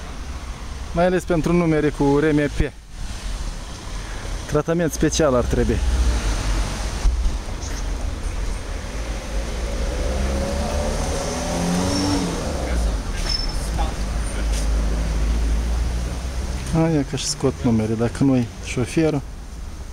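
A man talks nearby in short bursts.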